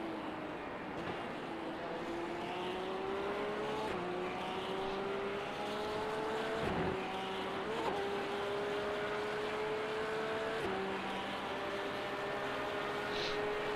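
A racing car engine roars steadily, rising in pitch and dropping sharply as it shifts gears.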